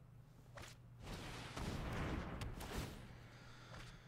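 A magical whooshing burst swells and fades.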